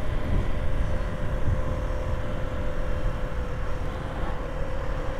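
A motorcycle engine hums steadily while riding along.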